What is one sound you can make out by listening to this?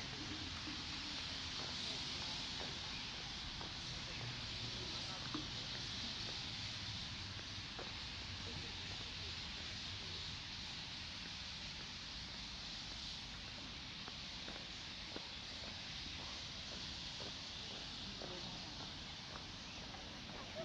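Footsteps scuff along a paved path outdoors.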